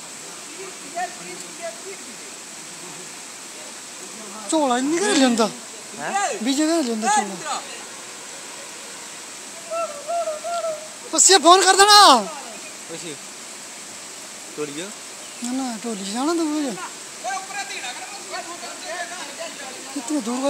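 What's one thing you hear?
A fast river rushes and roars steadily.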